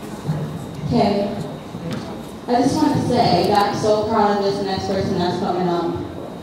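A young woman speaks calmly into a microphone over a loudspeaker.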